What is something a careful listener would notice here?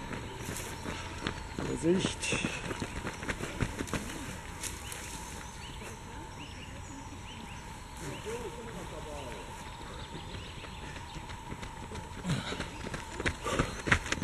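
Runners' footsteps crunch on a dirt path close by.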